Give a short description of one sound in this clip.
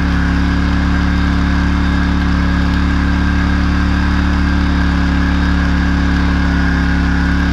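A tractor engine drones steadily close by.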